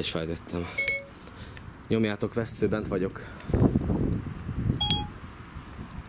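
A phone gives short electronic beeps.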